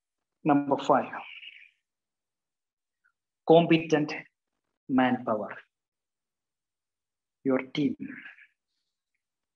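A man speaks calmly in short bursts, close to a microphone.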